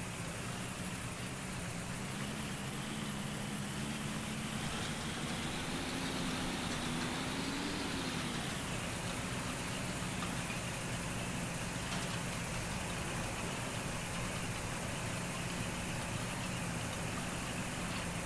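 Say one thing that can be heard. A heavy vehicle engine drones steadily, briefly rising in pitch before settling back.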